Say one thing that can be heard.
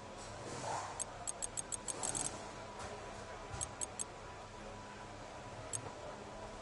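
Short electronic menu ticks sound in quick bursts.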